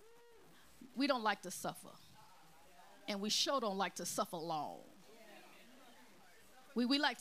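A woman speaks with animation into a microphone, pausing between phrases.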